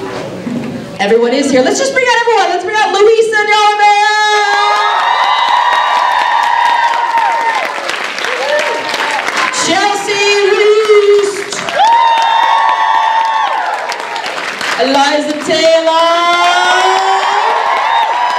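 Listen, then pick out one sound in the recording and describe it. A woman sings through a microphone in a large echoing hall.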